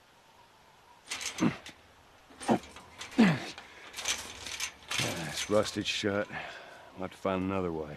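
A metal gate rattles and clanks as someone climbs over it.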